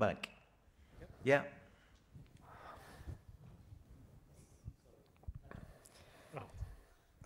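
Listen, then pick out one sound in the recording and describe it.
A man speaks calmly through a microphone in a large hall.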